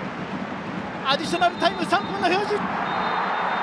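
A young man shouts out in frustration.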